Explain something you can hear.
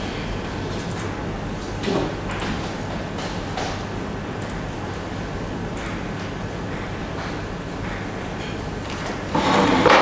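A laptop keyboard clicks as a man types.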